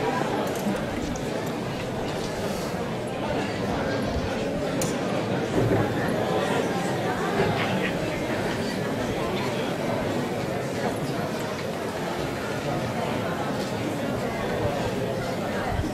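A wind band plays music outdoors.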